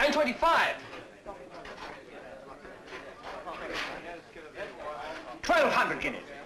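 A man talks calmly across a table.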